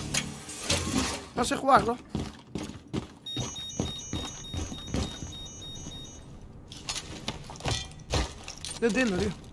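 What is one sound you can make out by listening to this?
Footsteps thud on hard floors in a video game.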